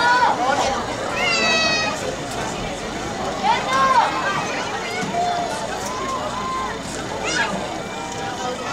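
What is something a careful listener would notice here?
A marching band plays brass and percussion outdoors across an open field.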